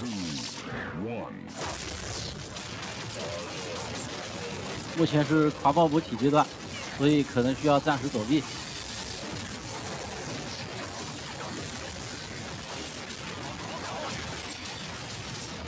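Energy weapon blasts whoosh and crackle repeatedly.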